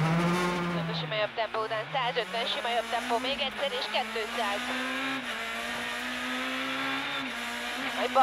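A rally car engine roars as the car accelerates hard, rising in pitch through the gears.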